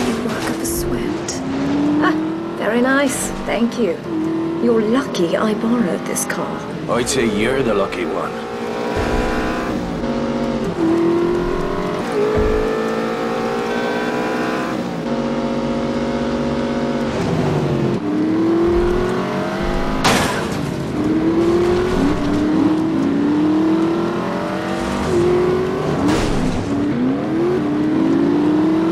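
A vintage sports car engine revs and shifts through its gears.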